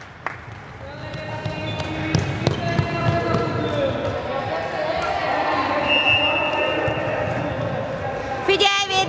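Young girls call out to each other across an echoing hall.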